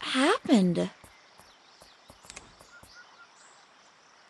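Footsteps tap lightly on a wooden floor.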